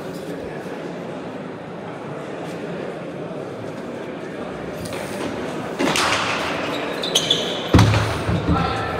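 A ball smacks hard against walls in a large echoing court.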